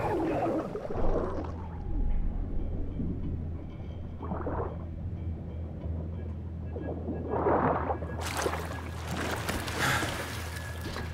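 A low, muffled underwater rumble drones steadily.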